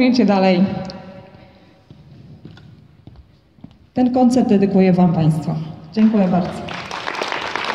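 A young woman speaks into a microphone through a loudspeaker in a large echoing hall.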